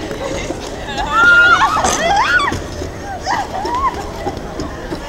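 Young women shriek and laugh nearby.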